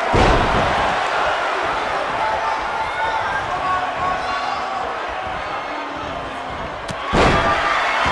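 A large crowd cheers and murmurs in a big arena.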